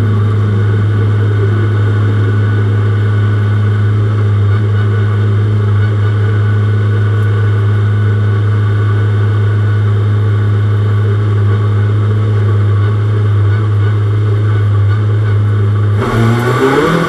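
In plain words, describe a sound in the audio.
A racing car engine drones loudly at a steady pitch.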